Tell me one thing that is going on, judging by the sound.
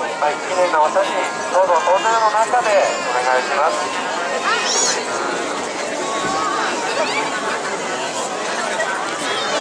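A large crowd of men and women chatters all around, close by.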